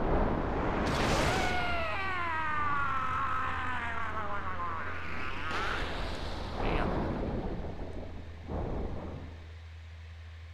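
A powerful energy blast roars and whooshes.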